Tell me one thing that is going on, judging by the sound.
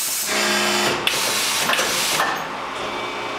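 Machine parts clunk and clank as a mould opens and closes.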